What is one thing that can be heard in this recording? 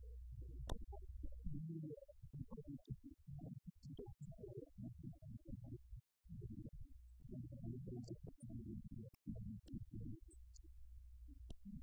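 A man speaks calmly through a microphone in a room.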